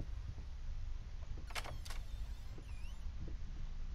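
A wooden door clicks and swings open.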